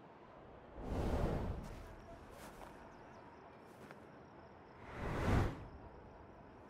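A loud whoosh rushes past.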